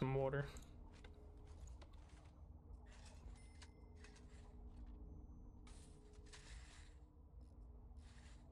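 Soft game clicks and chimes sound as pieces are placed.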